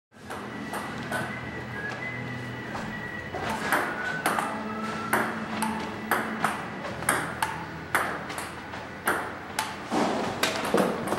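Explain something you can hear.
A ping-pong ball clicks sharply back and forth against paddles and a table.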